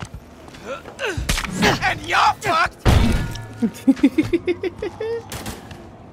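A man grunts and cries out in pain.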